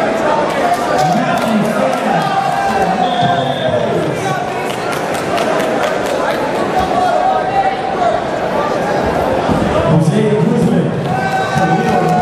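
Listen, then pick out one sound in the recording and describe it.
Bare feet shuffle and thump on a mat.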